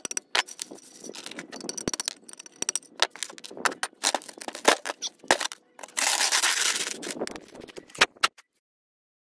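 A hammer strikes a chisel against stone in sharp, irregular blows.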